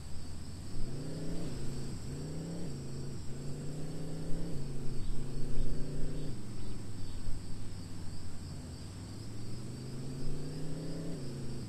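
A bus engine hums and revs up and down repeatedly.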